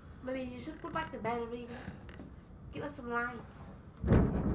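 A young woman talks with animation into a microphone close by.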